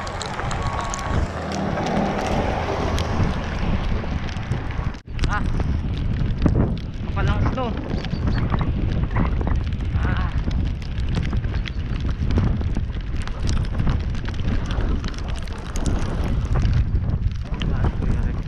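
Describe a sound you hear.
Wind rushes loudly past a moving bicycle.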